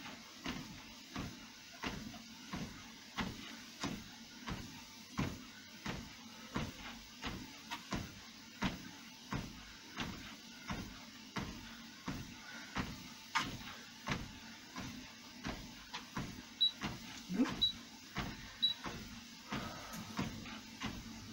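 A woman breathes hard while running.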